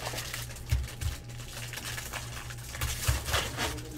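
Foil wrappers crinkle as card packs are torn open.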